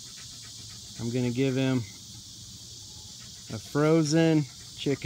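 A dog whines close by.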